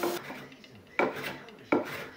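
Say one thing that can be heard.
A hand plane shaves wood in short strokes.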